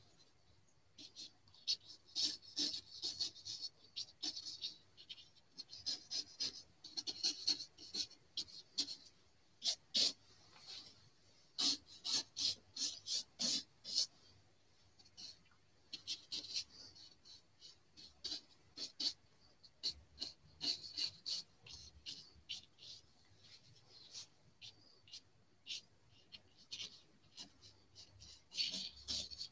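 A paintbrush scratches and taps softly against paper in short bursts.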